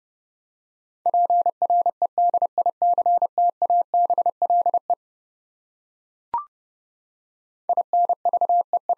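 A Morse code key taps out rapid beeping tones.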